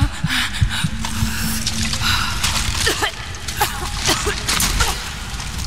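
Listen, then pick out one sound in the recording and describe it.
Water pours and splashes steadily nearby.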